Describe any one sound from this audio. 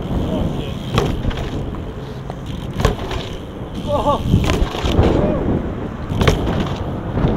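A bike lands hard with a metallic clank.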